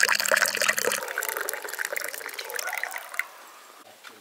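Water pours in a thin stream into a ceramic mug.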